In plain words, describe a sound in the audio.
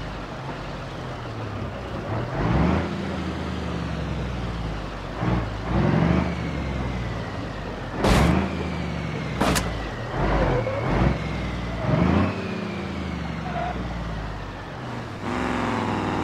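A truck engine rumbles as the truck crawls over logs.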